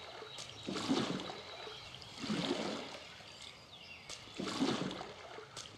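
A paddle splashes through water in slow, regular strokes.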